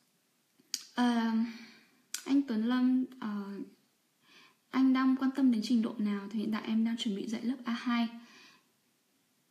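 A young woman speaks calmly and close by, in short phrases with pauses.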